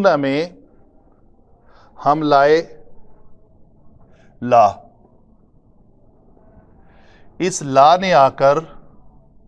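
A middle-aged man speaks calmly and clearly in short phrases, close by.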